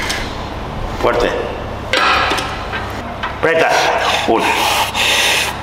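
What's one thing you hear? A young man grunts with effort close by.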